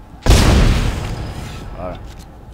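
A weapon fires with a sudden loud blast that rings away.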